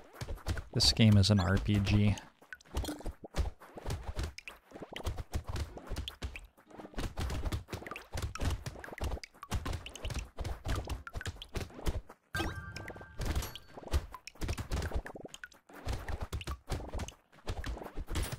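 Rapid electronic zapping shots fire again and again.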